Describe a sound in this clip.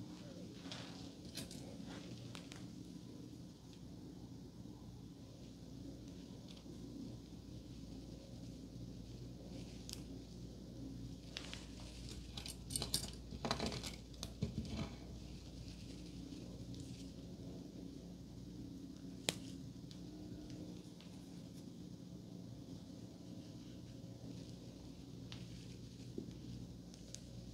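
Hands rustle and brush through hair close to a microphone.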